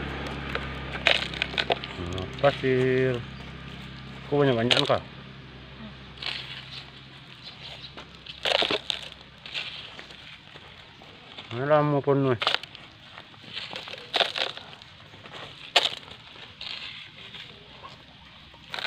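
Pebbles clatter and scrape on stony ground.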